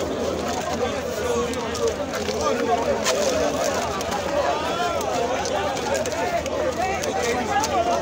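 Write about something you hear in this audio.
A large crowd of young men chants and shouts loudly outdoors.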